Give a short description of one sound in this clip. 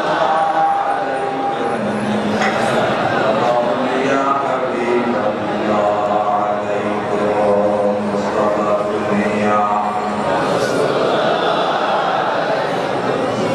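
An elderly man chants a prayer through a microphone and loudspeakers.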